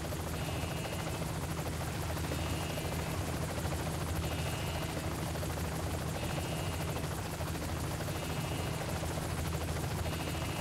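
A helicopter engine hums steadily nearby.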